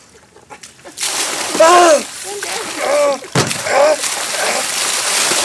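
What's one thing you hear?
Ice water splashes down from a cooler.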